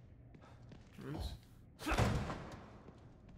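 A heavy door creaks open.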